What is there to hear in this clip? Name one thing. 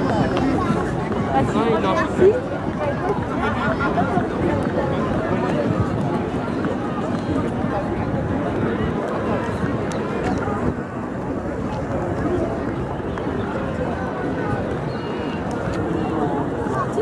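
A crowd of people chatter outdoors nearby.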